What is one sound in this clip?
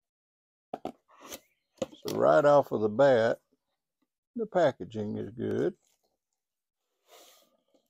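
Cardboard box flaps are pulled open with soft scraping.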